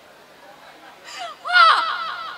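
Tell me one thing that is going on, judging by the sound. A young woman cries out loudly.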